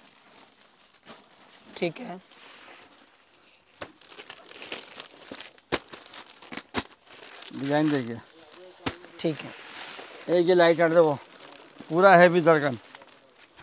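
Fabric rustles as it is unfolded and handled.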